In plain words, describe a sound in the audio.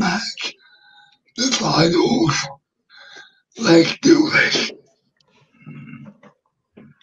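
A young man talks animatedly and close to a microphone, in short bursts.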